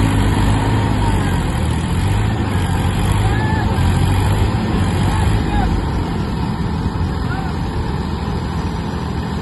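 Diesel tractor engines labour under load in deep mud.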